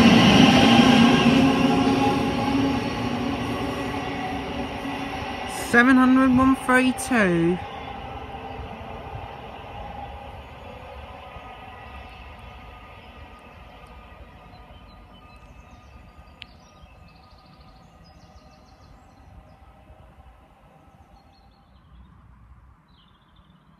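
An electric multiple-unit train rolls away along the track and fades into the distance.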